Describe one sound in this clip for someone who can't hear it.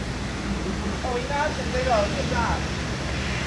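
A young woman talks briefly nearby outdoors.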